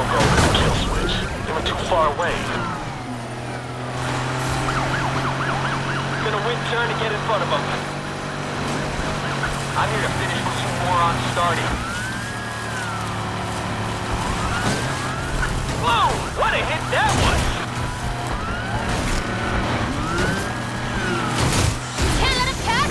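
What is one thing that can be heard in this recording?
Metal crashes and scrapes in sudden impacts.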